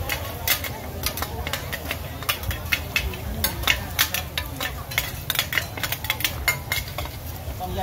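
Metal spatulas clink and scrape against a hot griddle.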